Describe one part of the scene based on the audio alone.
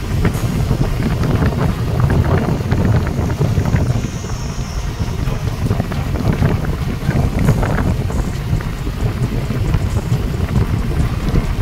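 Wind rushes hard against a microphone.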